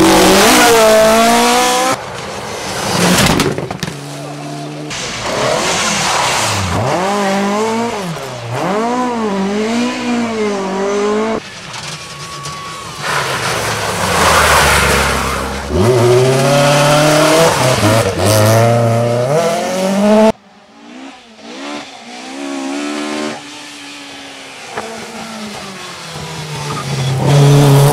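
Tyres crunch and skid on a wet road.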